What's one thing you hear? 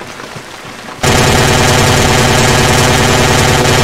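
A machine gun fires in a rapid, loud burst.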